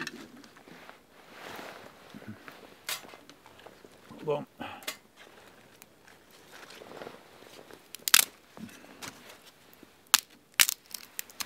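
Small sticks and stones clatter and knock on the ground.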